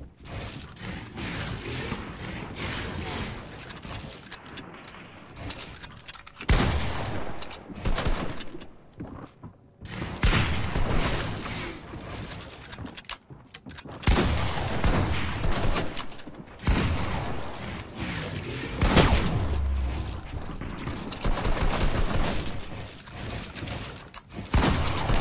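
Wooden panels clatter and knock in quick succession as they are built.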